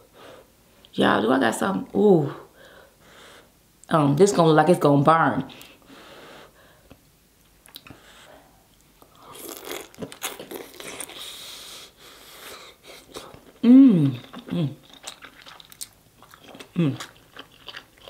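A young woman hums and moans with pleasure close to a microphone.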